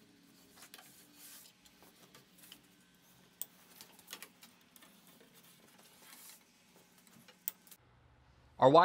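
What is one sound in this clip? Electrical cable rustles and taps against wooden studs.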